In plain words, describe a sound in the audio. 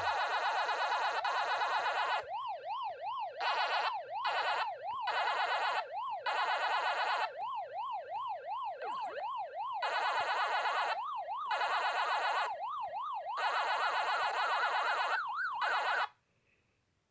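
Electronic game music plays with a fast chirping pattern.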